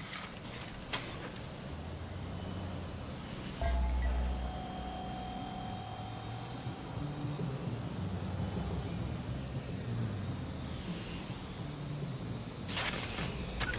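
A small drone buzzes steadily, its whine rising and falling in pitch.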